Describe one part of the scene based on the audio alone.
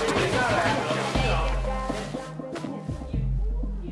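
A pillow thumps against a bed.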